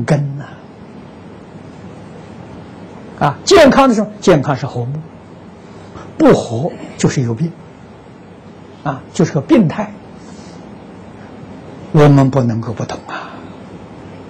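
An elderly man speaks calmly in short phrases with pauses.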